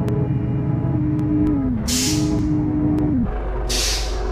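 A bus engine hums and winds down.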